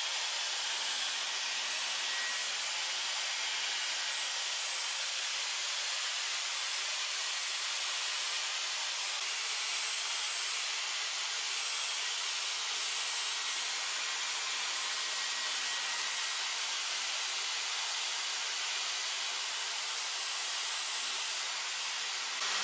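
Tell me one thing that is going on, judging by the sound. A hot air brush blows steadily.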